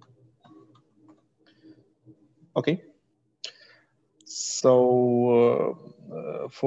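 A young man speaks calmly into a microphone over an online call.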